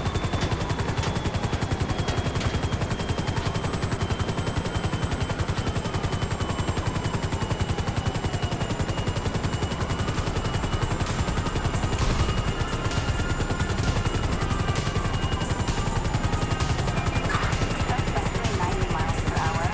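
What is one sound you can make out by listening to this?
A helicopter's rotor blades chop rapidly and steadily overhead.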